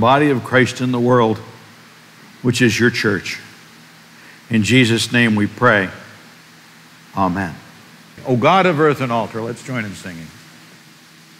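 A man speaks in short, calm phrases.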